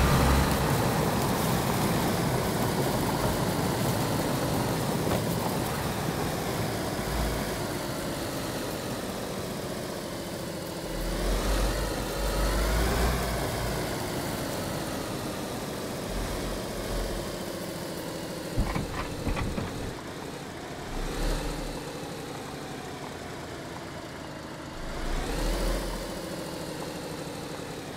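A car engine hums steadily and revs up and down as the car drives.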